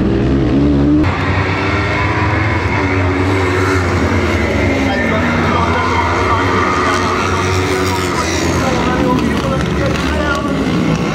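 Several buggy engines rev and whine from a distance across an open track.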